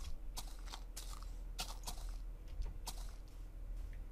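Footsteps crunch softly on sand and grass.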